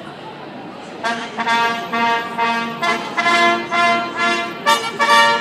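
A military brass band with drums starts to play a march outdoors.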